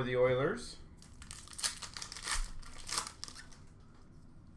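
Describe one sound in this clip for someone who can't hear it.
A plastic wrapper crinkles and rustles close by.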